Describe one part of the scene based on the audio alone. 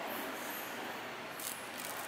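A large knife slices through raw fish.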